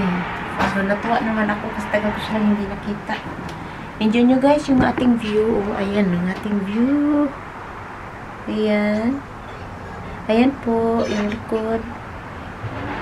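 A woman talks with animation close to a microphone.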